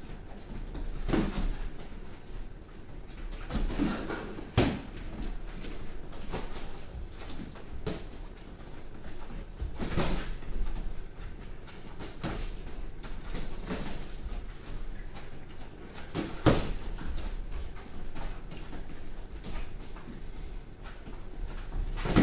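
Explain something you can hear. Sneakers squeak and shuffle on a padded ring floor.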